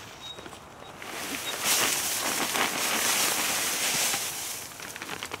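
Soil tumbles out of a bin into a wooden box.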